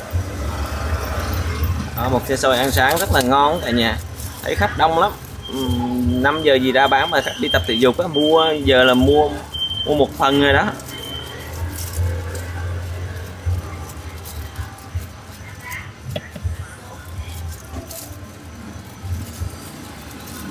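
Banana leaves rustle and crinkle as they are folded.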